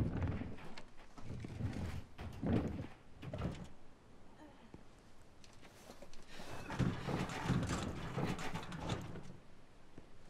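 A heavy metal bin rumbles and scrapes as it is pushed across a concrete floor.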